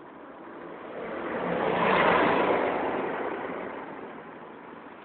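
A car drives past up close.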